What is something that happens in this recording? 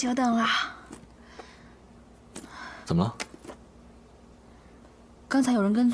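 A young woman speaks nearby in a questioning tone.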